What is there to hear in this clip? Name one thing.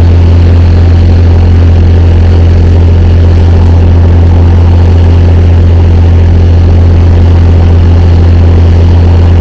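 A large tractor engine rumbles steadily nearby.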